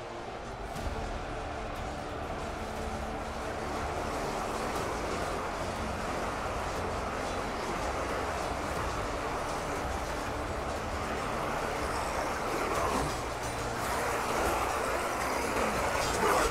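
A vast battle roars with a dense, steady din of clashing fighters.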